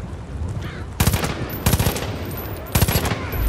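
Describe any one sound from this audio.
Gunshots ring out in short, sharp bursts, loud and close.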